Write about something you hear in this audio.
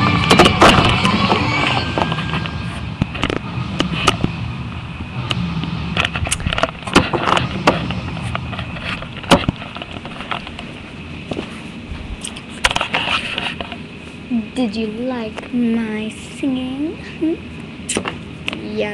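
Plastic toys knock and rub close against the microphone.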